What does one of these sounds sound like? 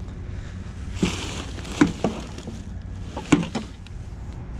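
Plastic bags rustle as they are shifted.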